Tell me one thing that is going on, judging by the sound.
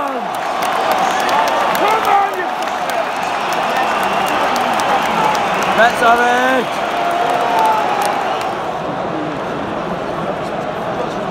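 A large crowd roars and cheers in a huge echoing arena.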